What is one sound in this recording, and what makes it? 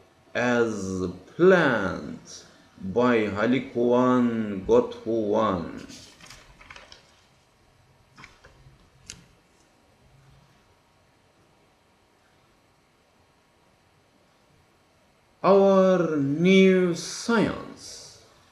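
A middle-aged man speaks calmly and close to a microphone, with pauses.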